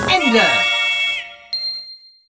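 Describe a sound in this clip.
A short game jingle plays with falling tones.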